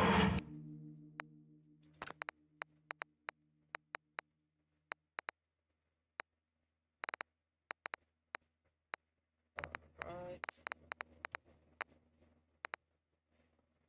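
Short soft clicks sound as menu options are picked.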